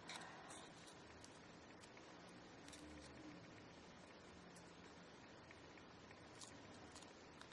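Fingers rustle and crinkle a small paper packet up close.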